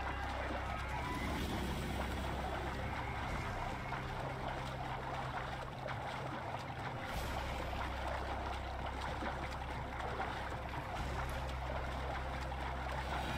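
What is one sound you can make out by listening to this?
Water splashes as a swimmer paddles steadily.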